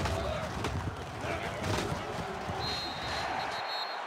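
Padded players thud together in a tackle.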